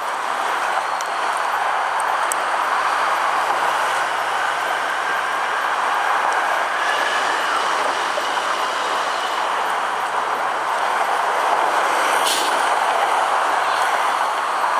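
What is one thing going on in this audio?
An engine hums steadily while driving.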